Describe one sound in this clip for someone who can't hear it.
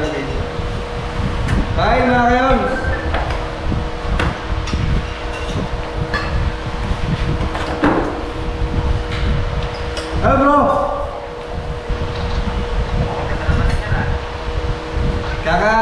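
Spoons and plates clink.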